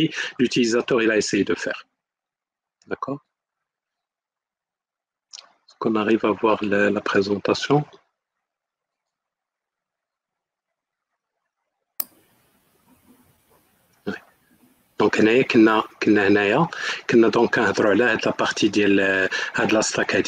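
A man speaks calmly, heard through an online call, with pauses.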